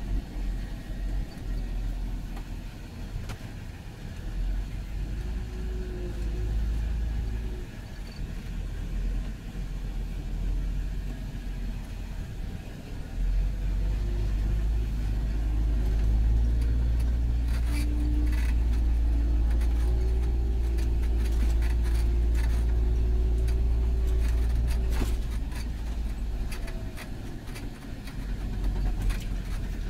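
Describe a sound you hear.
A tractor engine rumbles steadily from inside the cab and grows louder partway through.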